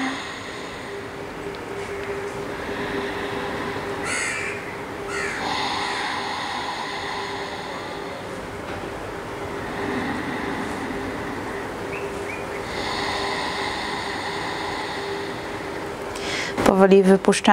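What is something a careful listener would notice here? A woman breathes deeply and slowly in and out.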